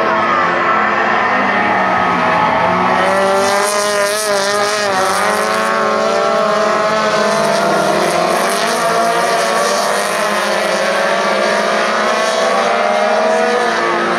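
Tyres crunch and skid on a dirt track.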